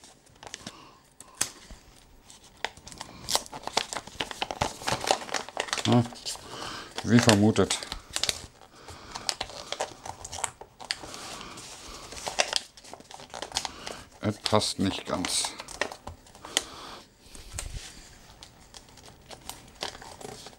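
Wrapping paper crinkles and rustles in a man's hands.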